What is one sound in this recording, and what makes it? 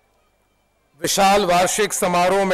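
A man speaks loudly with animation through a microphone and loudspeakers.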